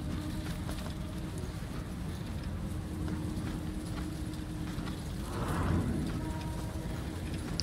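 Footsteps tread slowly on stone.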